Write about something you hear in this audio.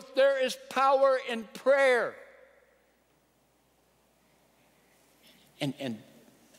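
A middle-aged man speaks with animation into a microphone, in a large echoing hall.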